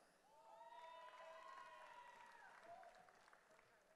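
A man reads out a name through a microphone in a large echoing hall.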